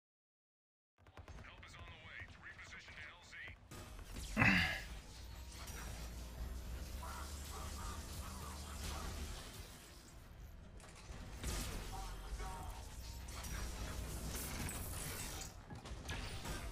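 Gunfire rattles and energy blasts crackle in rapid bursts.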